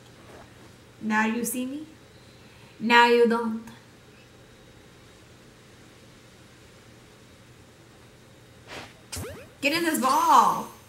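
A young woman speaks into a headset microphone in short bursts, with animation.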